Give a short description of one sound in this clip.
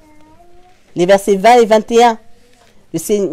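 A woman reads aloud, close to a microphone.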